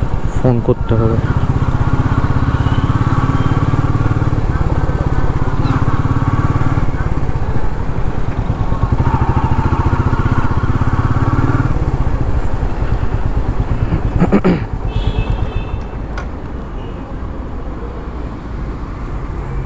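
Wind buffets past the rider.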